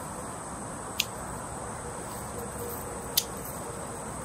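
Garden shears snip plant stems.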